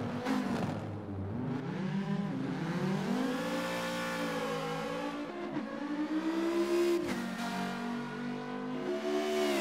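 A racing car engine revs hard, rising and falling in pitch.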